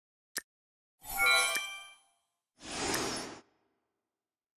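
A chest opens with a magical chime.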